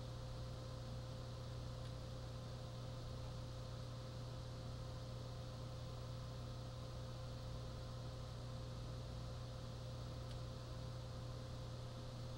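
A game's fire roars steadily through a television speaker.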